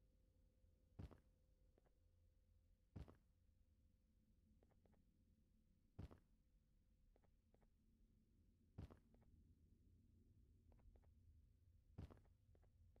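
Heavy thuds sound as a player jumps and lands on platforms.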